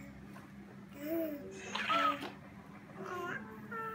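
A baby laughs happily.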